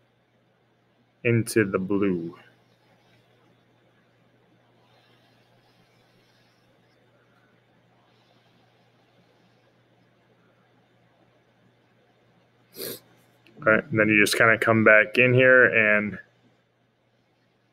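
A felt-tip marker rubs softly across paper.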